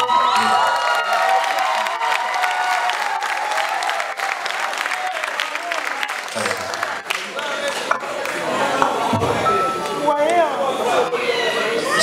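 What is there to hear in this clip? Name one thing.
A band plays along with a bass guitar, drums and keyboards.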